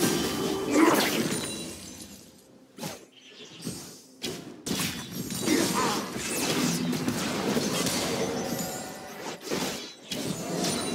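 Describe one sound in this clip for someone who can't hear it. Blows and impacts thud in a fight.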